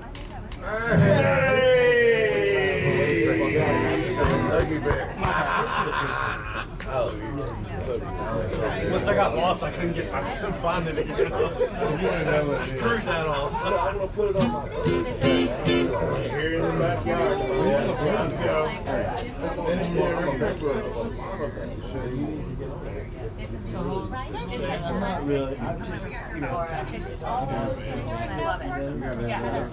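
An acoustic guitar strums steadily.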